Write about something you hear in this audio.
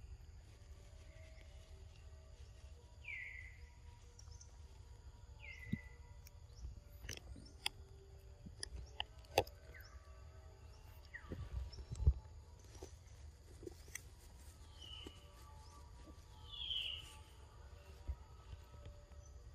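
A monkey chews and smacks noisily on soft fruit close by.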